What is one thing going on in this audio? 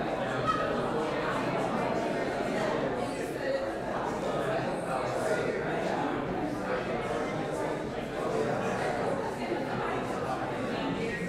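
A crowd of adults murmurs and chatters in a large echoing hall.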